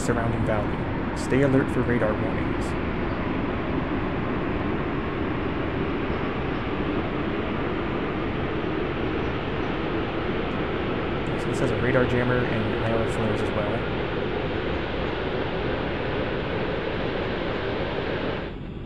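A jet engine roars steadily as an aircraft rolls along a runway.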